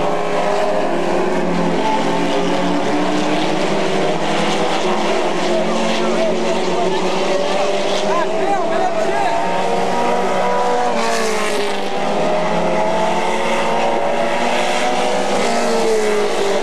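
Car engines rise and fall in pitch as the cars pass by.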